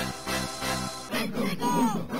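A short electronic victory jingle plays.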